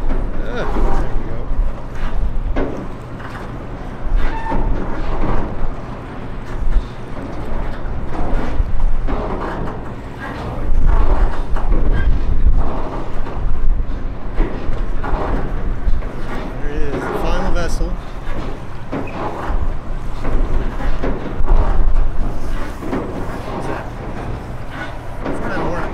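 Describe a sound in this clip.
A large ship's engine hums low and steady.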